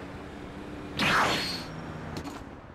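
A sudden bright whoosh bursts out and quickly fades.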